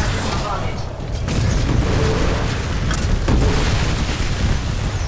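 Explosions boom and crackle close by.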